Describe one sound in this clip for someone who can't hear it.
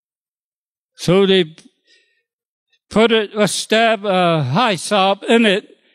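An elderly man speaks with feeling into a microphone, heard through a loudspeaker.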